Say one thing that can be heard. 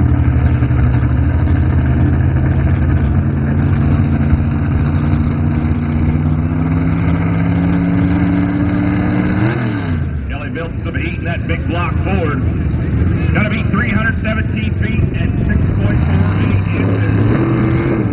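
A truck engine roars loudly, its pitch slowly climbing, then dropping and revving up again.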